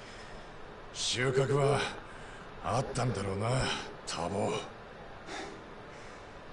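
A man speaks with a tense tone, close by.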